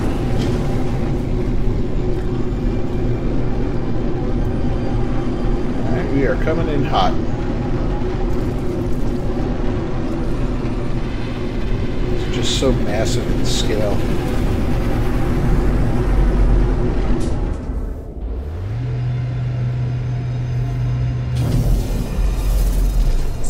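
A spaceship engine hums and drones steadily.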